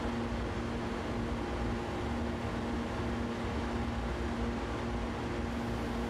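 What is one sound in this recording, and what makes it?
An electric train's motor hums steadily while the train runs along the track.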